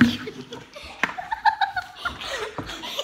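A young boy laughs loudly close by.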